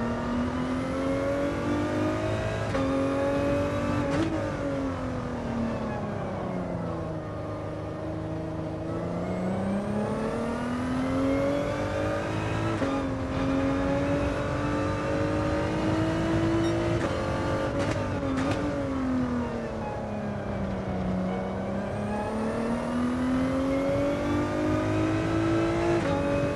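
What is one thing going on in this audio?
A racing car engine roars, rising in pitch and dropping as it slows for corners.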